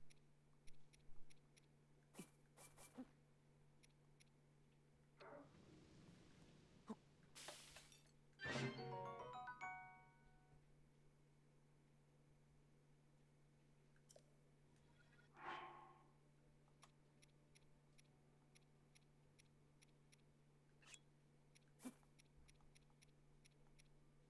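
Short soft electronic blips tick in quick succession.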